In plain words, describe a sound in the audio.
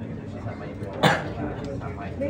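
Pool balls click together once sharply.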